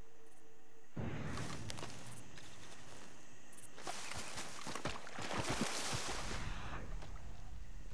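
Boots splash through a shallow stream.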